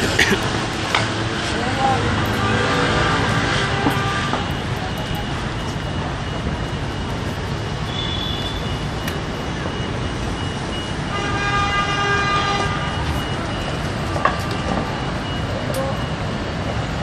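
Traffic and street noise hum steadily outdoors.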